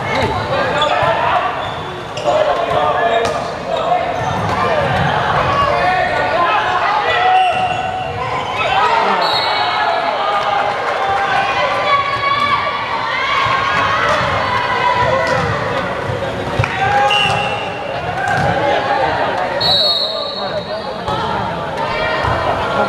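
Young men shout and call out across a large echoing hall.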